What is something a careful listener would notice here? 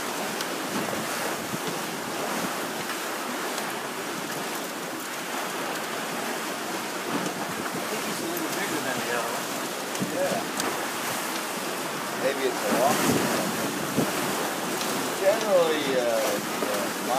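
Wind blows steadily outdoors on open water.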